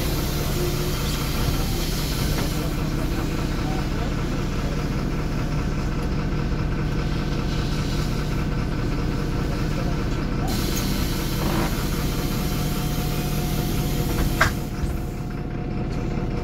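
A bus engine hums low and steady from inside the bus.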